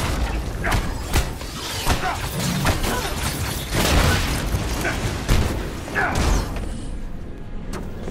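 Heavy punches thud against an armored enemy.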